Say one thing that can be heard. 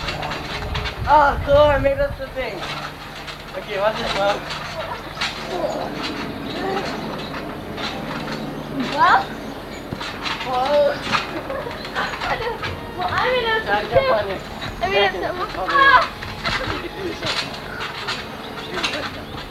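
A trampoline mat thumps and creaks as children bounce on it.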